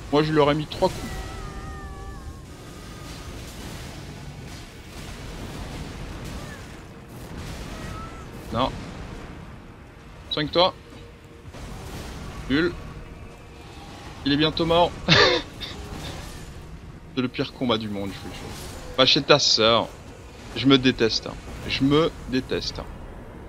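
Heavy blows and blasts crash in a fight.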